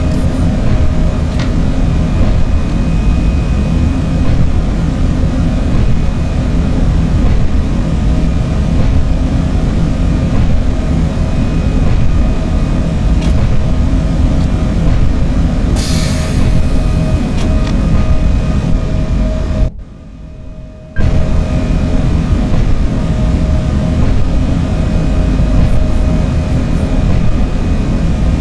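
An electric train motor hums with a steady whine.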